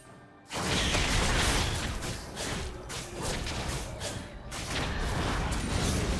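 Magic blasts whoosh and crackle in a fast video game fight.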